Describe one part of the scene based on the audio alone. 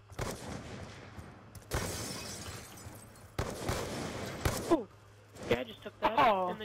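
Loud rifle shots ring out one at a time, each followed by a long echo.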